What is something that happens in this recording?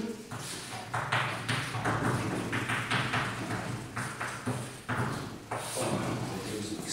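A man speaks steadily, like a lecturer.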